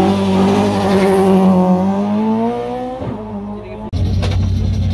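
A rally car engine roars loudly as the car drives past.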